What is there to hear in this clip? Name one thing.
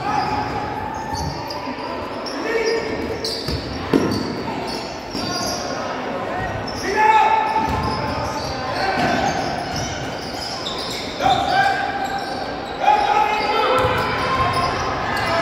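Sneakers squeak sharply on a wooden floor in an echoing gym.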